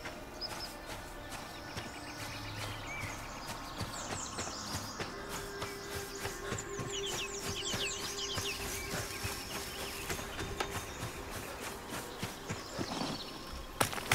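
Footsteps crunch through grass and dirt at a steady walking pace.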